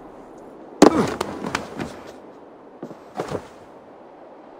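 Footsteps knock on wooden boards.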